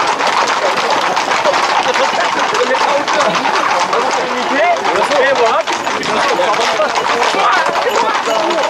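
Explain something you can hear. Horses' hooves clatter on a road.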